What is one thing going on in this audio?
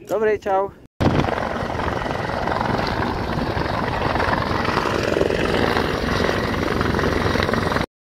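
A helicopter hovers nearby with a loud rotor roar.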